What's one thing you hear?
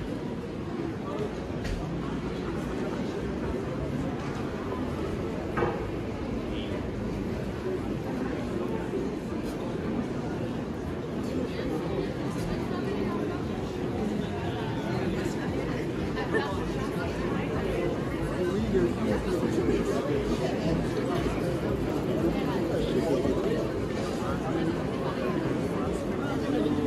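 Footsteps tap on cobblestones.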